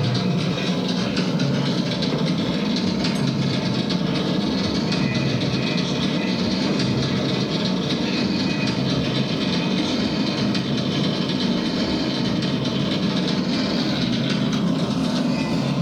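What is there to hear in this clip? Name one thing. Loud, distorted electronic music plays with a steady beat.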